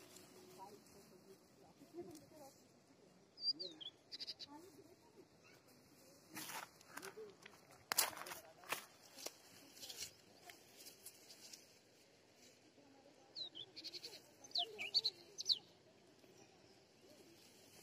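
Leaves rustle and crackle as a hand pushes through plants.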